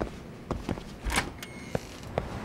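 A door swings open.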